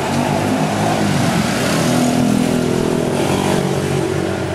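A jeepney engine drones as it drives past.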